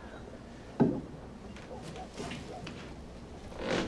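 Glass bottles clink in a wooden crate.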